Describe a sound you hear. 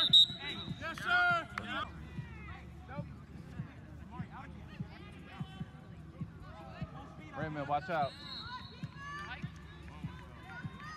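Young people shout to each other in the distance outdoors.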